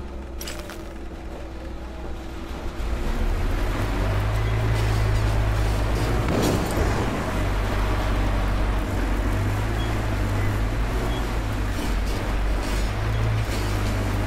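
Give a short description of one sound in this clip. A vehicle engine rumbles steadily from inside the cab.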